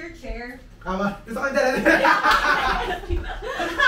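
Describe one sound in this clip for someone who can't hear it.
A woman laughs loudly and shouts with excitement close by.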